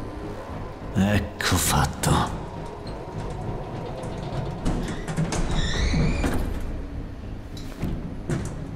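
Heavy metal doors scrape and grind as they are forced apart.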